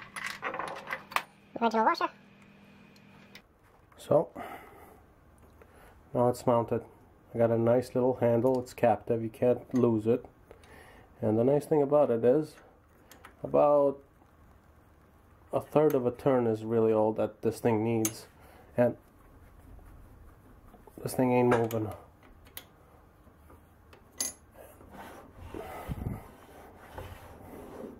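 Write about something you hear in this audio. Metal parts of a lathe clunk and click as they are handled.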